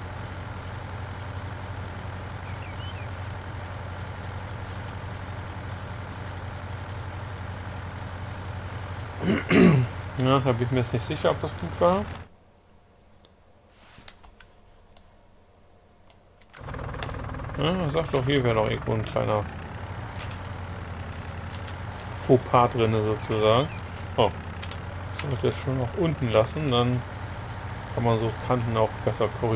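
A tractor engine hums steadily at a low pitch.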